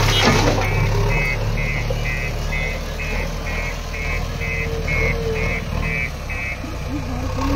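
A backhoe loader beeps repeatedly as it reverses.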